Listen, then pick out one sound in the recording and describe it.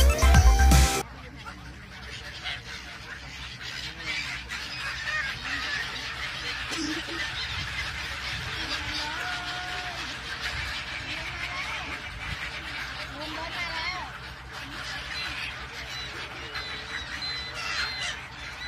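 Many gulls cry and squawk all around.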